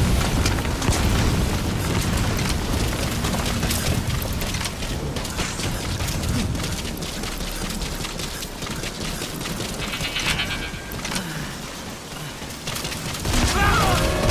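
Footsteps thud on metal as a soldier runs.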